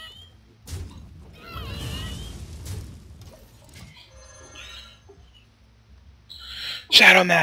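Game sound effects crash, whoosh and chime.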